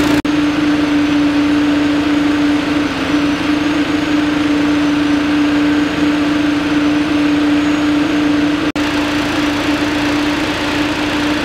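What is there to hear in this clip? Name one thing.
A fire engine's pump engine drones steadily nearby.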